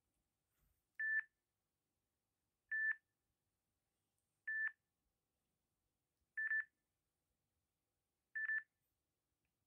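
A phone beeps once every two seconds.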